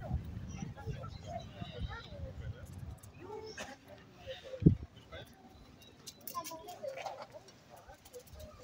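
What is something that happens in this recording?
Adults talk with each other nearby outdoors.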